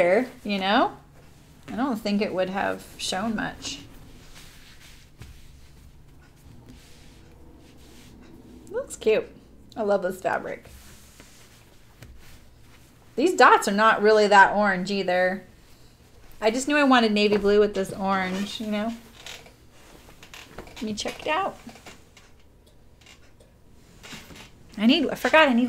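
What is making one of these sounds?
Fabric rustles as it is folded and smoothed by hand.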